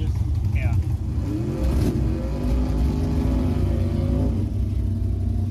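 A race car engine revs up briefly and settles back.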